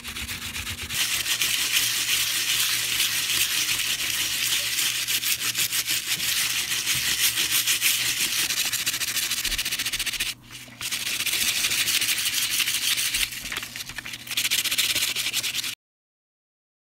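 Steel wool scrubs briskly against thin metal foil with a harsh, scratchy rasp.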